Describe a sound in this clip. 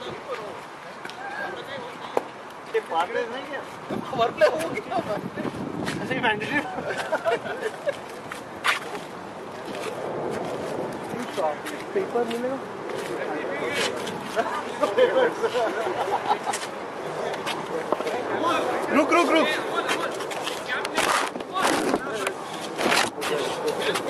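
Several men talk and call out across an open field.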